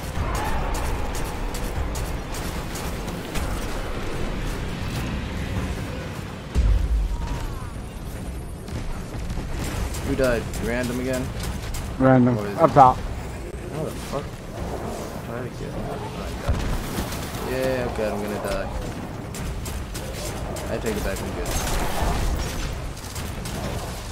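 Explosions thud and boom.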